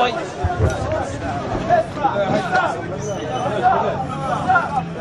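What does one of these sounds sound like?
Several men talk loudly and call out to each other nearby, outdoors.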